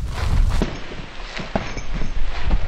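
Fists thump against a heavy punching bag.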